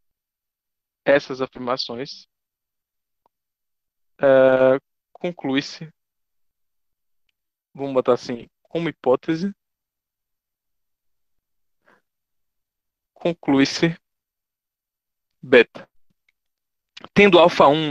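A man speaks calmly in short bursts over an online call, pausing between phrases.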